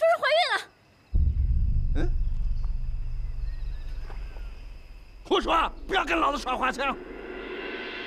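A man speaks sharply and firmly.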